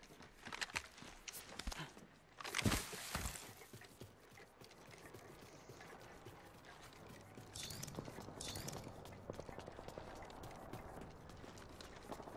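Footsteps thud quickly while a character runs.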